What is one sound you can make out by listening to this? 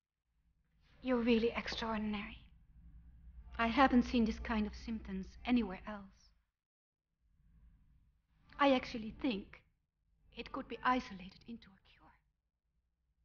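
A middle-aged woman speaks urgently, close by.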